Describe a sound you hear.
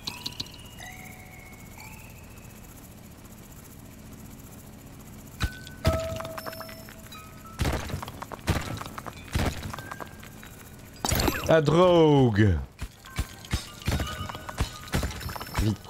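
Short electronic game sounds blip, zap and thump in quick bursts.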